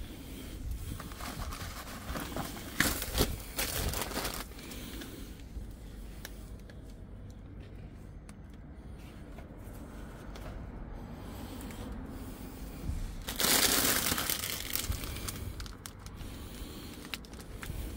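Plastic packaging rustles and crinkles close by as items are picked up and moved.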